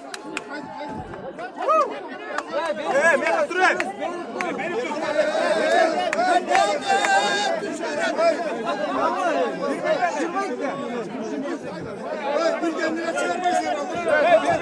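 A man shouts loudly to a crowd outdoors.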